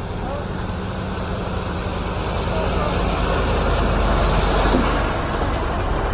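A heavy truck engine rumbles as it drives past close by.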